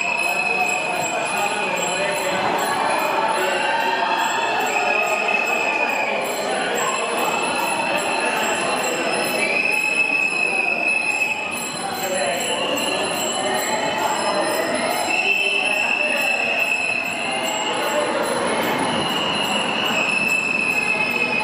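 A crowd of men and women chant and shout loudly, echoing in a tunnel.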